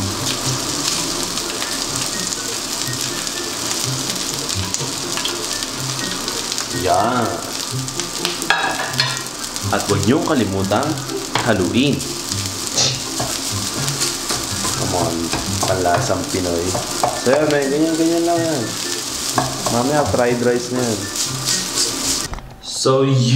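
Rice sizzles and crackles as it fries in a hot pan.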